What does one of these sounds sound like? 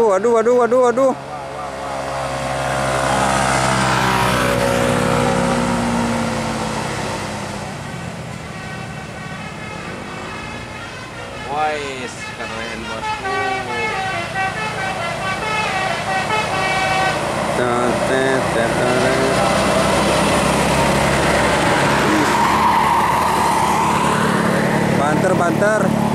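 Bus engines rumble and roar as buses climb a winding road.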